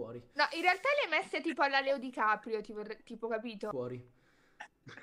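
A young woman exclaims with animation over an online call.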